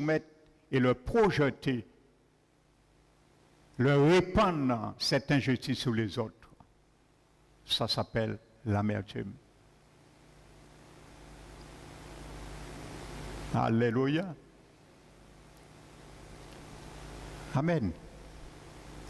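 A man speaks calmly into a microphone in an echoing hall, with pauses.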